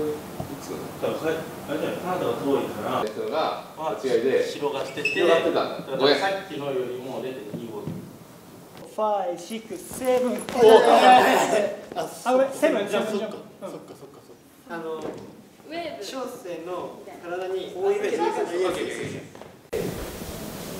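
Young men talk with animation nearby.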